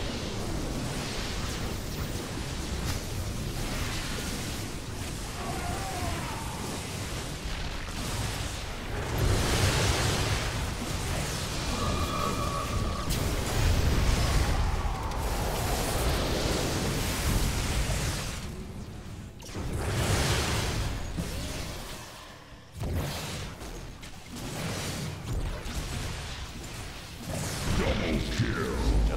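Game battle effects crackle and blast in quick bursts.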